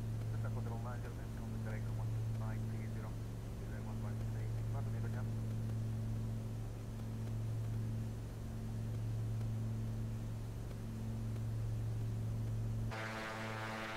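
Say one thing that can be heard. A single-engine piston plane's engine drones, heard from inside the cabin.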